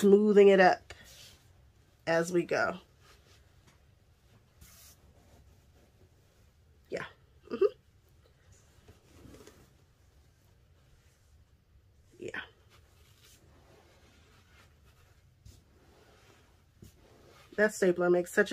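Soft padding rustles as hands move it.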